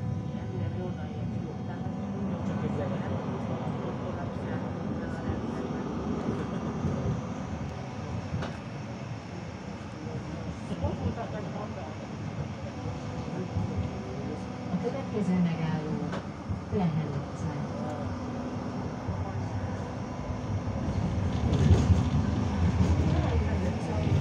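A tram rumbles steadily along its tracks.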